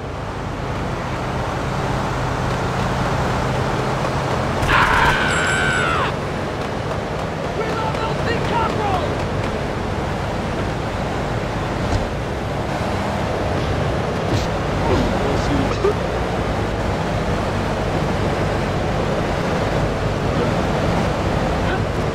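Car engines hum as traffic drives by.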